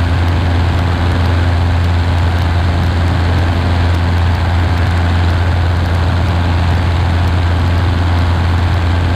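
A light aircraft's propeller engine drones loudly and steadily.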